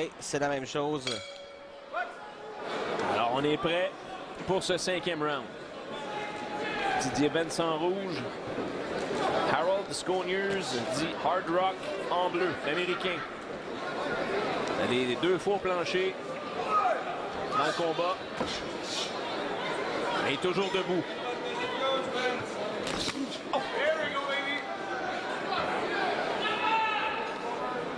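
A crowd murmurs in a large, echoing arena.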